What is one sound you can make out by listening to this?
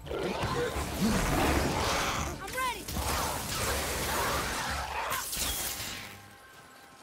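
A fiery explosion roars and crackles.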